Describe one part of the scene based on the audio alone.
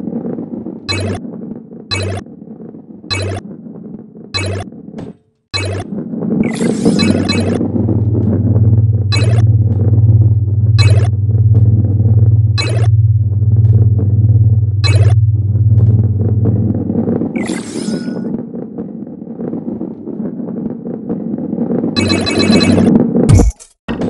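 A ball rolls along a wooden track with a steady low rumble.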